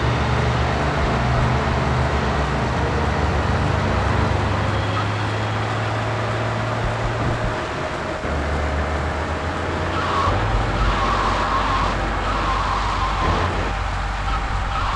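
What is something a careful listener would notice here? A tank engine rumbles steadily as it drives along a road.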